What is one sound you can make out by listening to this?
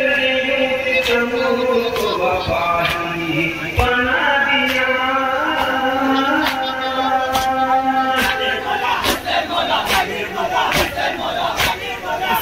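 Many hands beat on chests in a steady rhythm.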